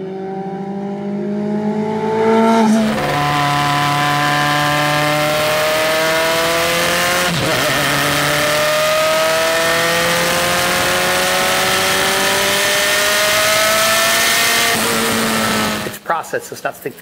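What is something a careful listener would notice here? A racing car engine roars at high revs, shifting gears as it speeds past.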